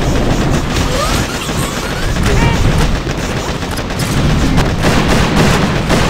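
Explosions boom and gunfire crackles without pause.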